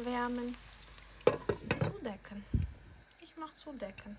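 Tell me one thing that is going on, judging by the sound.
A glass lid clanks down onto a frying pan.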